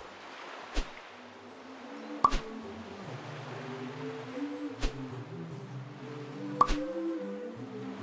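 Cheerful game music plays softly.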